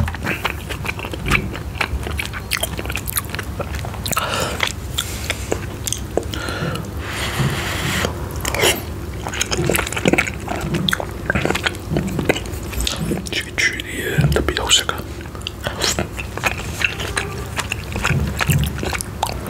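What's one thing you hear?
A metal spoon clinks and scrapes against a ceramic bowl.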